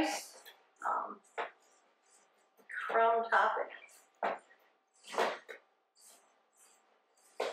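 A woman talks calmly nearby.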